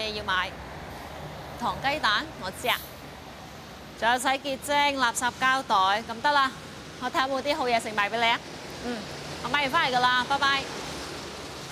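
A young woman talks on a phone with animation, close by.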